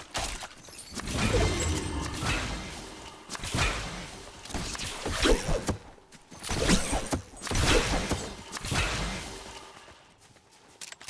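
A burst of splashing, fizzing magic goes off close by.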